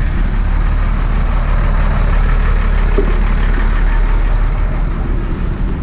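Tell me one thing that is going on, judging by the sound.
A bus engine rumbles alongside.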